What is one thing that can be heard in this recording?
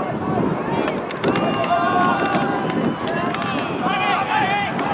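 Several men shout loudly across an open field.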